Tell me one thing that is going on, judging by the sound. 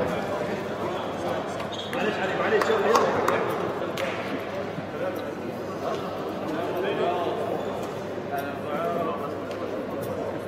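A man speaks with animation, giving instructions to a group.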